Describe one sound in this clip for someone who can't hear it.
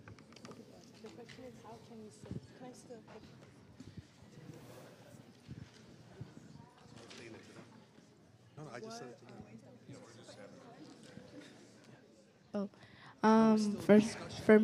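An audience murmurs and chatters quietly in a large echoing hall.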